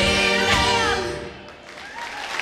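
An orchestra plays a final chord that stops.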